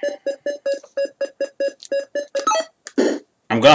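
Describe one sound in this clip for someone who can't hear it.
Retro video game beeps repeat in a quick rhythm.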